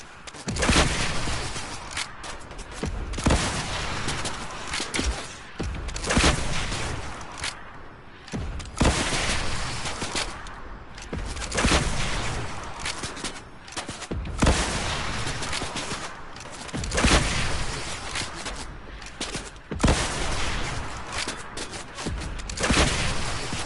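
Rockets launch with a sharp whoosh, again and again.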